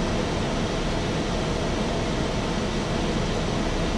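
An aircraft engine drones steadily, heard from inside the cabin.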